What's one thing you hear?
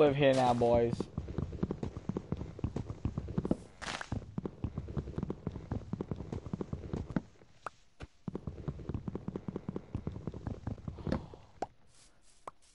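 Rapid, repeated dull knocks of blocks being punched.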